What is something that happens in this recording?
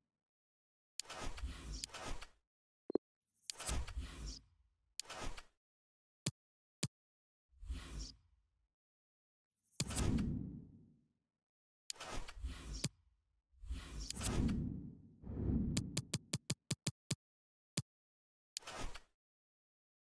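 Soft electronic whooshes sweep past one after another.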